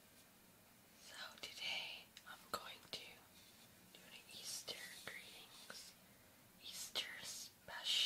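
Fingernails tap on a board close to a microphone.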